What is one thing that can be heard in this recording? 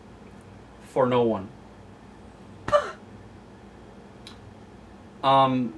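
A middle-aged man speaks close by in short, loud bursts.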